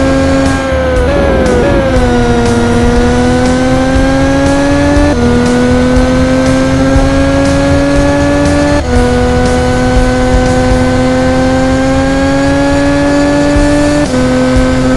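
A racing car engine whines steadily, rising in pitch and dropping sharply with each gear change.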